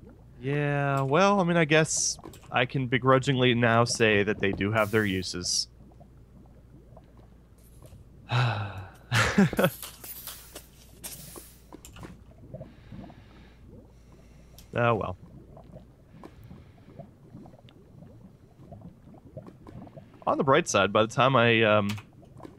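Lava bubbles and pops softly.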